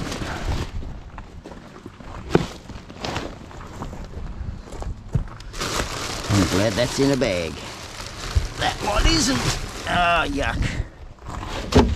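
Plastic bin lids bang and rattle.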